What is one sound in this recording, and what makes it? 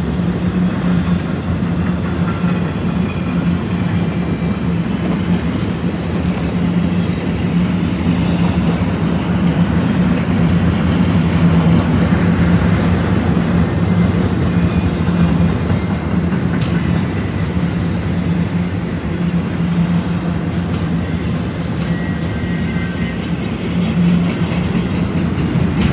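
A long freight train rumbles and clatters steadily past close by.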